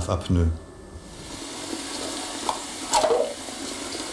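Water runs from a tap and splashes into a basin.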